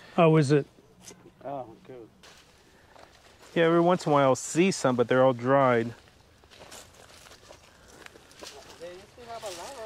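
Dry plants rustle and crunch underfoot.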